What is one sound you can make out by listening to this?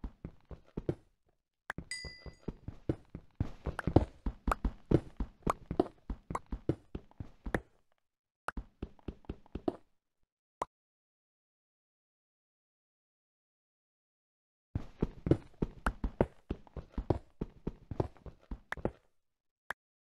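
A pickaxe taps rapidly against stone blocks.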